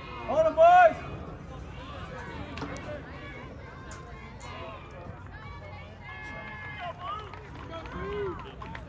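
Several adults call out and cheer from the sideline.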